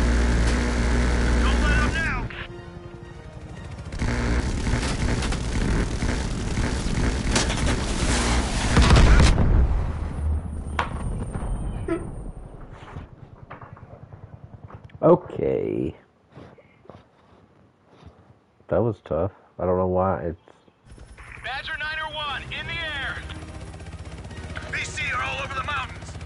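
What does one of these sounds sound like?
A helicopter's rotor thumps loudly and steadily.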